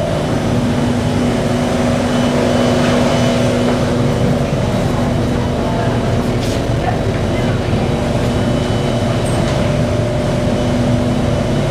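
Footsteps tap on a hard floor nearby.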